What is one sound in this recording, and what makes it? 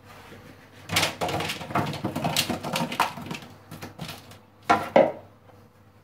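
Potato wedges tumble from a bowl onto a paper-lined baking tray.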